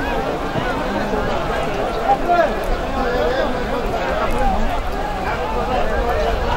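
A large crowd of men shouts and calls out all at once outdoors.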